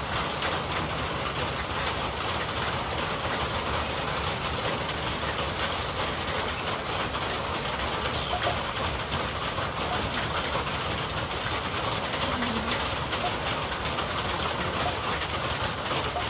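Leaves rustle steadily in a light wind outdoors.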